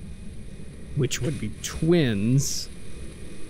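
A man speaks briefly and with animation into a close microphone.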